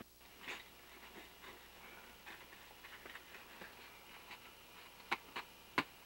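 An ice axe chops and scrapes into hard snow.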